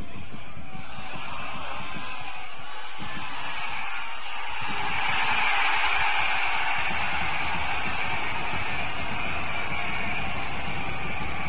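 A crowd cheers and roars, growing louder.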